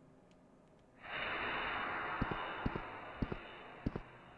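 A spray hisses steadily.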